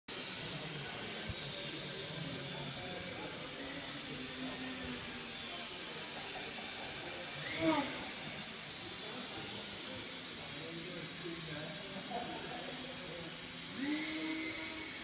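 A small drone's propellers whine steadily as it flies around a large echoing hall.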